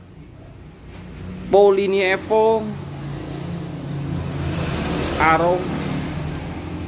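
A motorcycle engine idles nearby with a low rumble.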